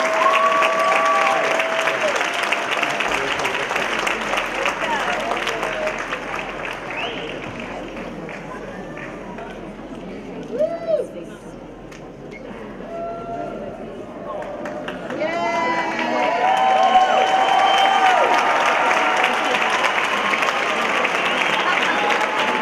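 A large children's choir sings in an echoing hall.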